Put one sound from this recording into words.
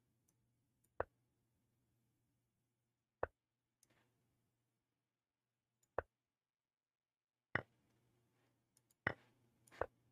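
Sharp wooden clicks of chess pieces being placed sound now and then.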